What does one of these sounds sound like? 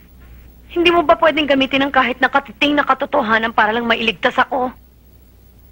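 A woman speaks nearby in a tense, earnest voice.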